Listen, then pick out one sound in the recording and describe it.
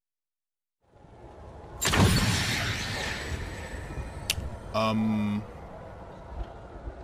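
A magical whoosh and hum rise as a glowing portal comes alive.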